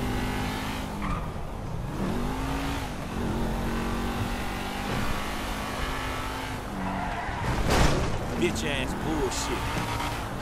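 A car engine roars steadily and revs.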